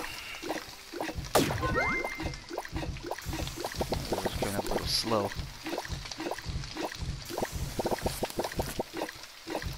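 Ingredients sizzle in a pan.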